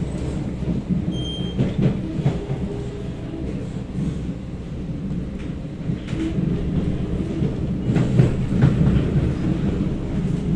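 A train rumbles steadily along the tracks, with wheels clattering over the rail joints.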